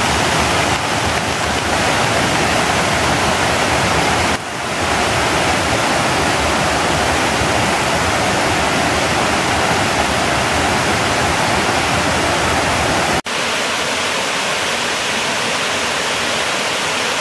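A waterfall splashes and roars steadily nearby.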